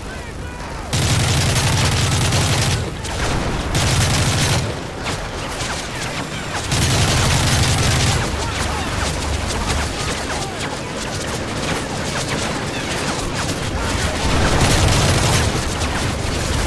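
A rifle fires loud rapid bursts close by.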